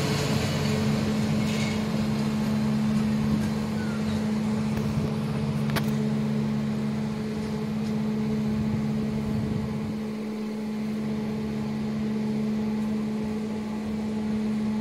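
A passenger train rumbles along the tracks, moving away.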